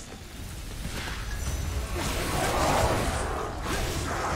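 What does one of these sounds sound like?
Crackling magic blasts whoosh out in bursts.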